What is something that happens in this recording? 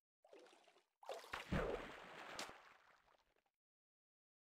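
Water splashes as someone wades out.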